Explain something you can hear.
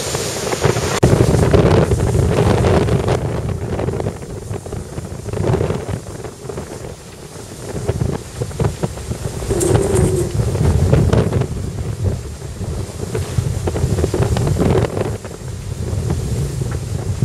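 Water rushes and splashes past a fast-moving boat.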